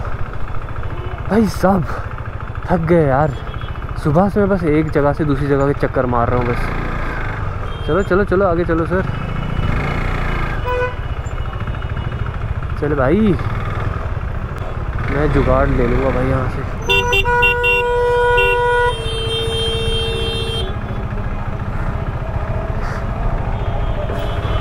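A motorcycle engine rumbles at low speed in street traffic.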